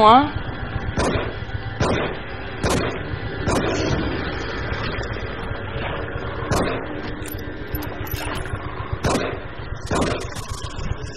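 Gunshots ring out sharply, one at a time.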